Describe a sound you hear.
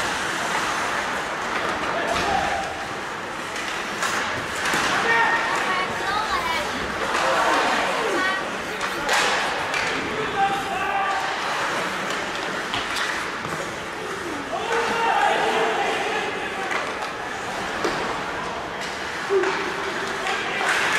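Hockey sticks clack against the puck now and then.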